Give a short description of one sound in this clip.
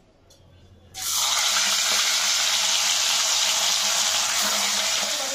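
Hot oil sizzles loudly as a fish fries.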